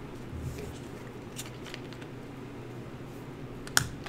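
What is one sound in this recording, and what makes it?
A deck of cards is shuffled by hand.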